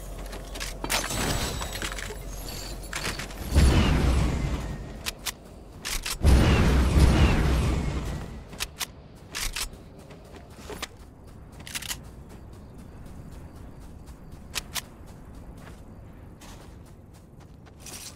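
A game character's footsteps patter on the ground.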